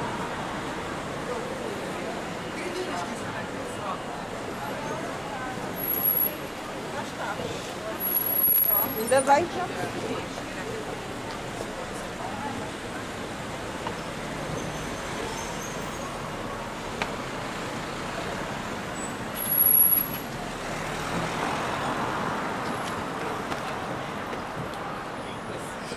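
A car engine hums as traffic moves slowly past.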